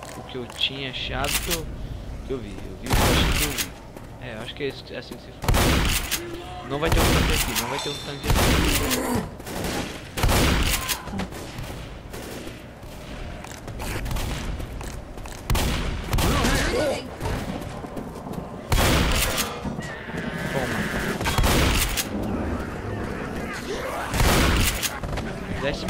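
A shotgun is pumped with a metallic clack between shots.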